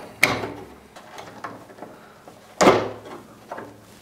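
Plastic parts click and knock as hands work on a small machine.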